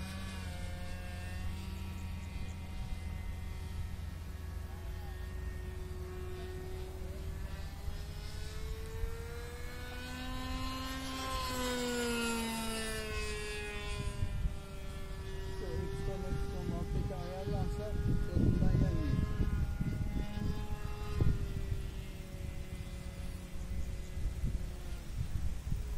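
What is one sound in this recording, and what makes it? An airplane drones overhead, its pitch slowly rising and then falling as it passes.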